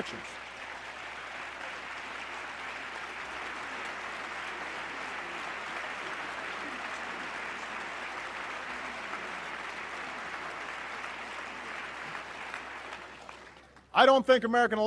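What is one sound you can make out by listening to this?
A large crowd applauds steadily in a big hall.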